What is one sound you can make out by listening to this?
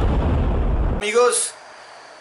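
A young man speaks to the listener up close.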